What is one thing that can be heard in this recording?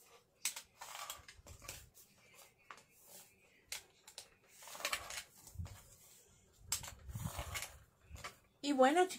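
A craft blade scrapes and cuts through a foam sheet in short strokes.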